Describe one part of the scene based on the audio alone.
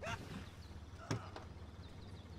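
A car trunk lid clicks open.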